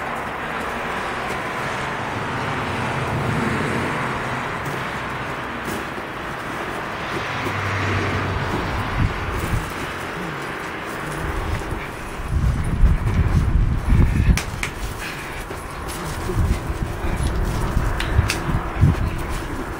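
A dog's paws scrape on gravel.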